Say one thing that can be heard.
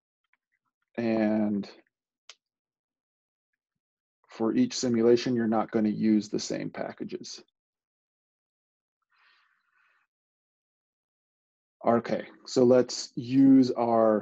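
A man speaks calmly through a microphone, in short phrases with pauses.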